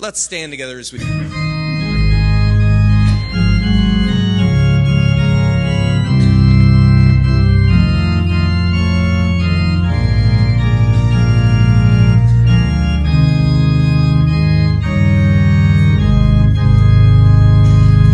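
An organ plays a full, sustained hymn.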